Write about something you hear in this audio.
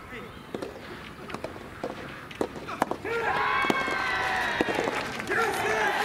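A racket strikes a ball with sharp pops.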